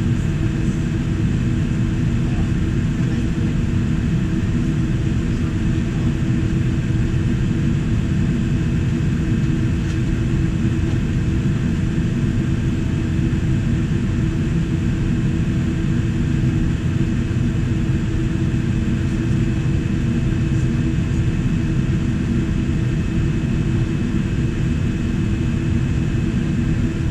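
A jet engine roars steadily close by, heard from inside an aircraft cabin.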